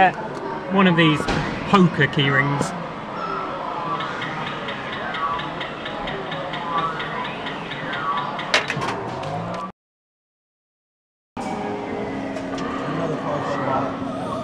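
An arcade claw machine plays a bright, repeating electronic jingle.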